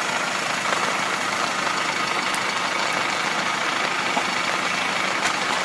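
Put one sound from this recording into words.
A diesel engine of a harvester rumbles steadily close by.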